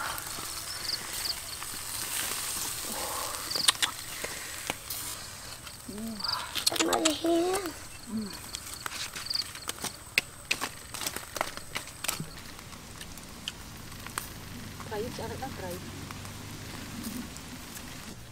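Charcoal crackles under grilling fish.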